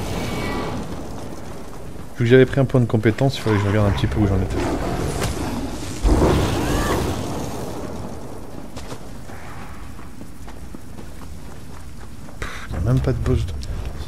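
Electric sparks crackle and snap.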